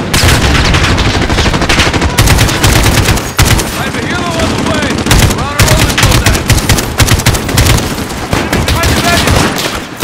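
A rifle fires in rapid bursts at close range.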